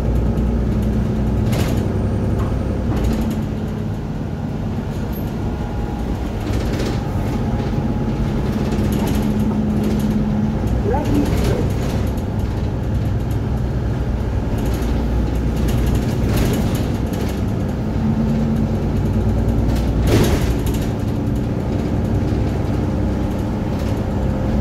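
A diesel Mercedes-Benz Citaro bus engine drones, heard from inside the moving bus.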